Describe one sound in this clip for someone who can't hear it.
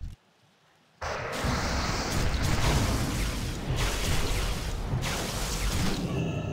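Magic spells burst and whoosh during a fight.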